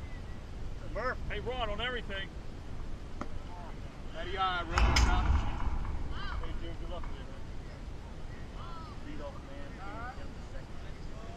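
Young players shout and call out in the distance across an open field.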